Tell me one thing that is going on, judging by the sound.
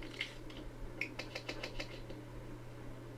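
Playing cards flip over with a quick run of soft clicks.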